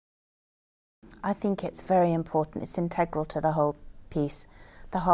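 A middle-aged woman speaks calmly and close up.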